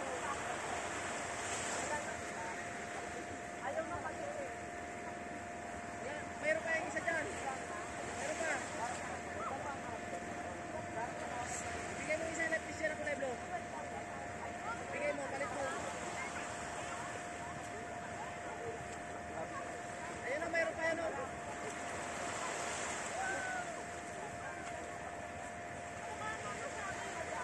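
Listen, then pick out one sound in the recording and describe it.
Small waves wash gently onto the shore.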